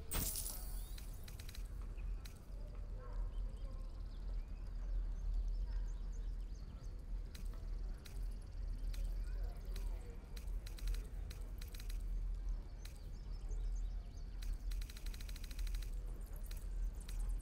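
Soft interface clicks sound as menu items are selected.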